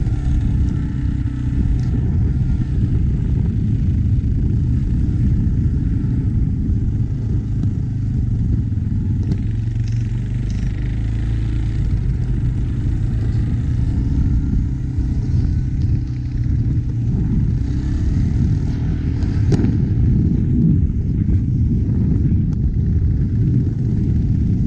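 A quad bike engine drones steadily nearby.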